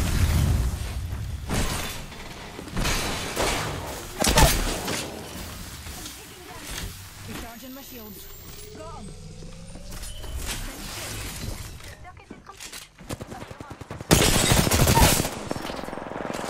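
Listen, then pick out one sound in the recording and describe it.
Gunfire bursts loudly in rapid volleys.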